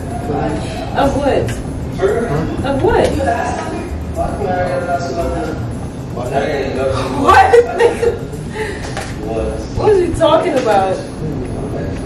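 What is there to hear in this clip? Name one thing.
A young woman laughs and exclaims loudly.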